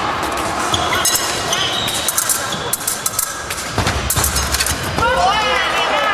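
Fencing blades clash and click.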